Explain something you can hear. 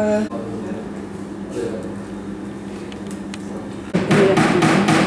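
A slide projector hums steadily.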